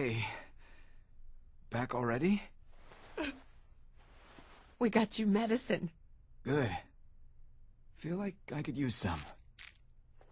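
A man speaks calmly and weakly, close by.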